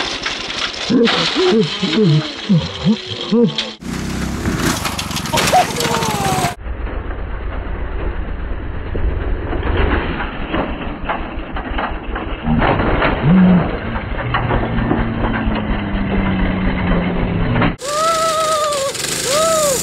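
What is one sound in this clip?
A small motor engine rumbles and putters steadily outdoors.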